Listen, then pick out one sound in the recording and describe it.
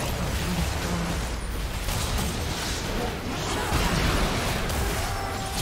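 Spell effects whoosh and crackle in a fast video game battle.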